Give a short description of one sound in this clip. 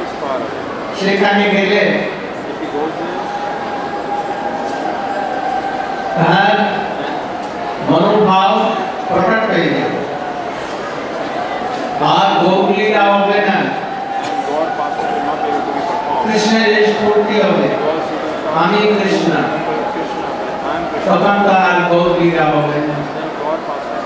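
An elderly man chants in short phrases into a microphone.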